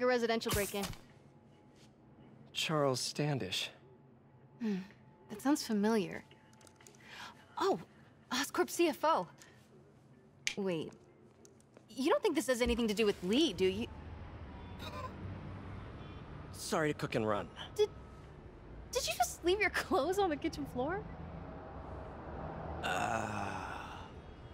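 A young man speaks briefly and apologetically.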